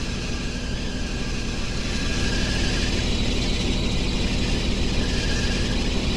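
Car tyres screech as they spin on the road.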